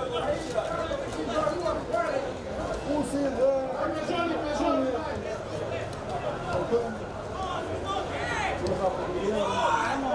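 Men shout and call out to each other across an open outdoor field.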